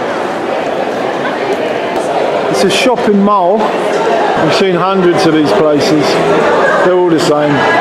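A crowd of people chatters and murmurs in a large echoing hall.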